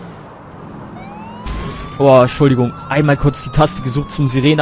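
A police siren starts to wail and rises in pitch.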